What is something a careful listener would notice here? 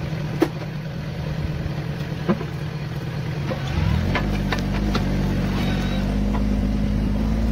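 A tractor engine rumbles steadily and revs up.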